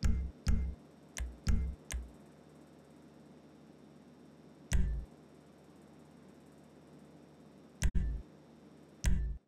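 Short electronic clicks with deep thuds sound now and then.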